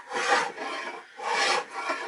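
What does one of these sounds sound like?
A chisel scrapes and pares wood.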